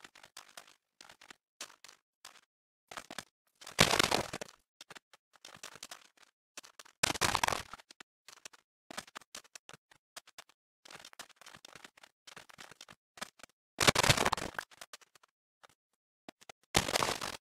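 Footsteps crunch softly on sand in a video game.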